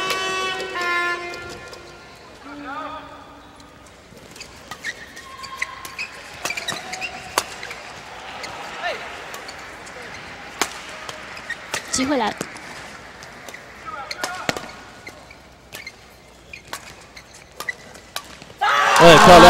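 Rackets strike a shuttlecock in quick rallies.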